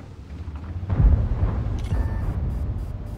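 A tank gun fires with a sharp boom.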